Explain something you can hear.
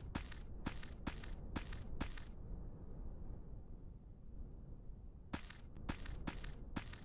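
Weapon strikes swish and thud in a quick, even rhythm.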